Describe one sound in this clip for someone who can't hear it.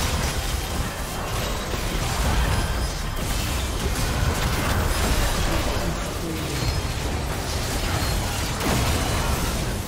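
Game spell effects crackle and burst in a fight.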